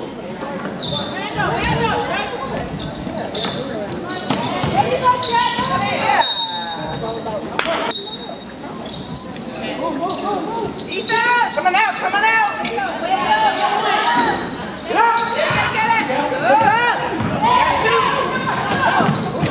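A basketball thumps as it bounces on a wooden floor.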